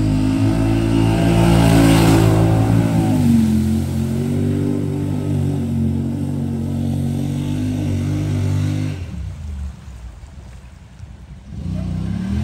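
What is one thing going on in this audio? An off-road vehicle's engine roars up close and then fades into the distance.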